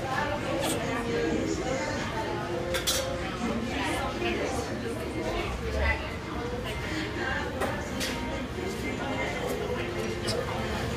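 A broom sweeps across a tiled floor with brisk scratchy strokes.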